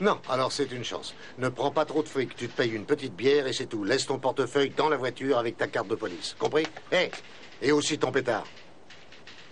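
A middle-aged man speaks firmly into a telephone.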